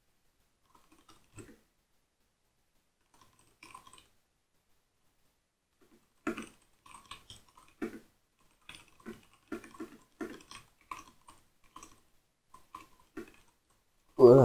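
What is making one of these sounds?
Keys clatter softly as someone types on a keyboard.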